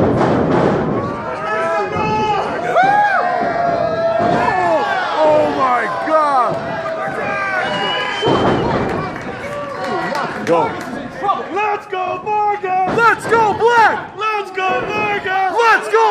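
A crowd of men and women shouts and cheers close by in a large echoing hall.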